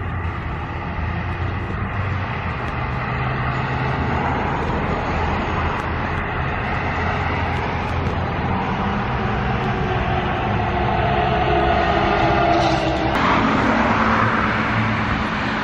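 Car tyres roll along the road.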